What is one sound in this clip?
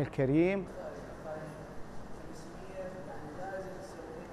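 A man talks quietly in a room, a little distant.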